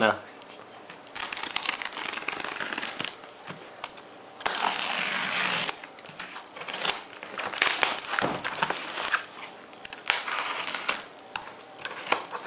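Hands rub and scrape against a cardboard box.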